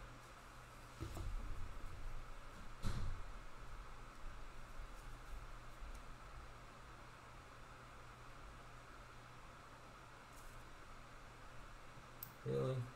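A plastic card case clicks and rattles as hands handle it.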